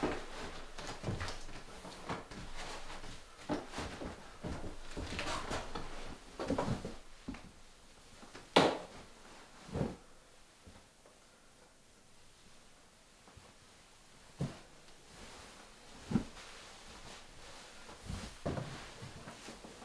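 Fabric rustles and swishes as bedding is handled.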